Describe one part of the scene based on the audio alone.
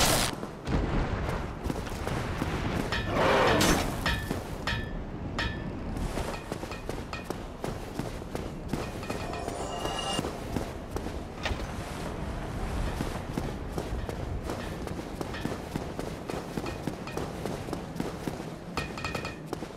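Armored footsteps clank on stone while running.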